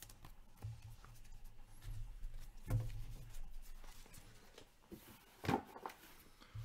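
Hands shuffle and tap a stack of trading cards.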